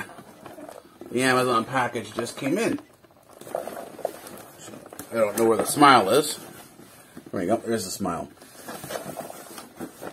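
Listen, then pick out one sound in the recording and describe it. A cardboard box rustles and thumps as it is handled.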